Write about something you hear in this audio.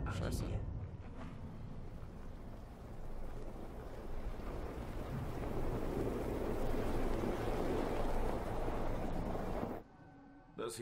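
A car engine hums as the car drives slowly through snow toward the listener.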